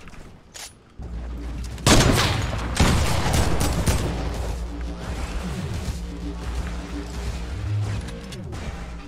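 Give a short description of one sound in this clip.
Loud gunfire bursts and rattles close by.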